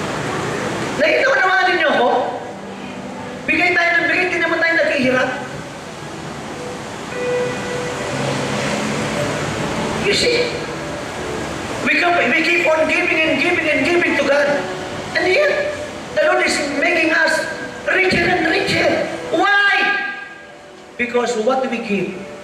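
A man speaks with animation through a microphone and loudspeakers in an echoing hall.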